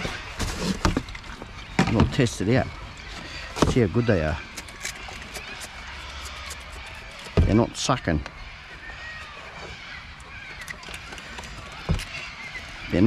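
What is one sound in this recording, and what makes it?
Plastic bottles and a cardboard box thump and clatter into a plastic bin.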